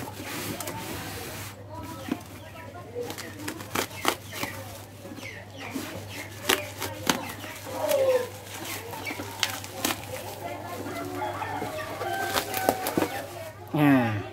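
Plastic wrapping crinkles and tears as hands pull it apart.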